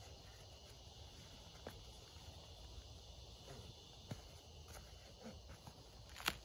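Nylon fabric rustles and crinkles softly in a person's hands.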